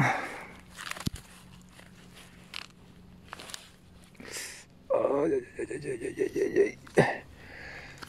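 A gloved hand rustles through dry, low plants.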